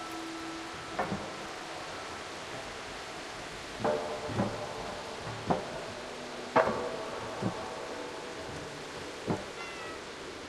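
A cat's paws land with ringing thuds on hollow metal pipes.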